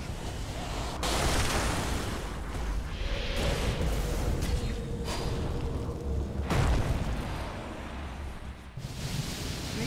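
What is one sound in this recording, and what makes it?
Fire spells roar and whoosh in bursts.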